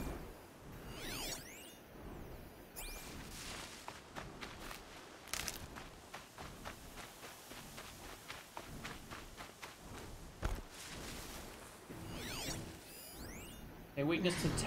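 Shimmering electronic tones sweep up and down.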